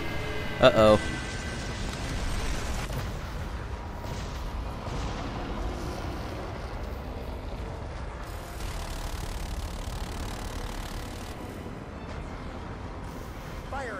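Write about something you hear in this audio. Falling debris crashes and rumbles.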